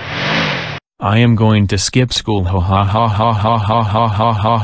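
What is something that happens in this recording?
A synthetic computer voice speaks with animation.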